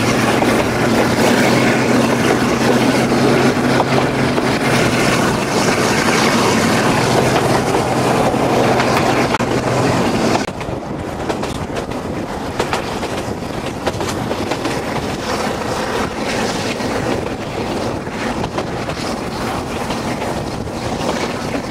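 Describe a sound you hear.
Wind rushes past a moving train.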